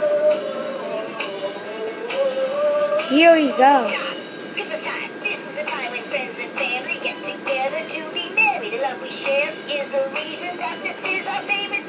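A toy Santa sings a song through a small tinny speaker.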